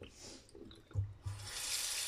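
A metal pot clanks against a tap.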